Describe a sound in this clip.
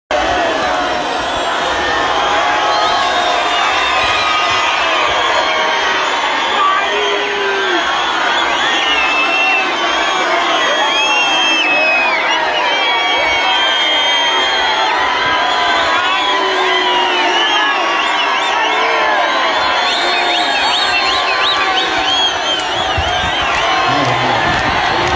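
A large crowd of men and women shouts, sings and cheers loudly outdoors.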